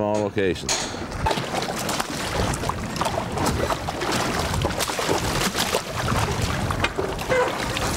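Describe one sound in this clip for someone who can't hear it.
Water splashes as a net is dipped and pulled through it.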